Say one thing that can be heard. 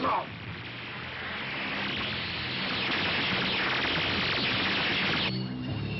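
Laser guns fire in rapid, zapping bursts.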